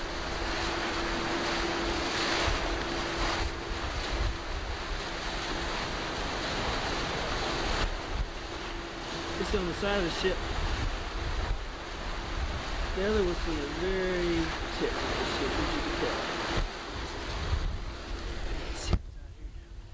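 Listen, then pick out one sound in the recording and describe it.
Water rushes and splashes along a moving boat's hull.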